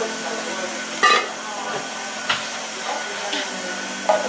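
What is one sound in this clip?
Plates clink and knock together.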